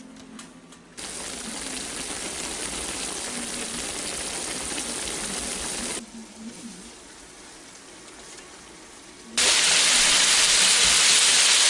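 Food sizzles loudly in a hot frying pan.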